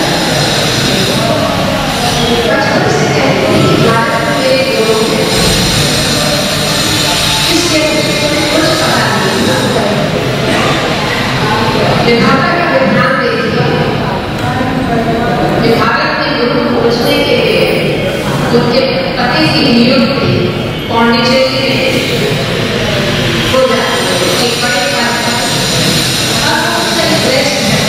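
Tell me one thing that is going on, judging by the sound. An elderly woman speaks steadily into a microphone in an echoing hall.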